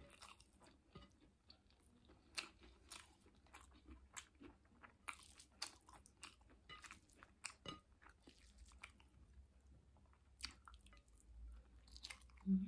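Fingers squish and rustle through rice on a plate.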